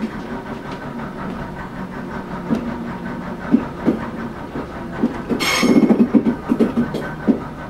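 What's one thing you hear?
A train engine rumbles steadily as the train rolls along.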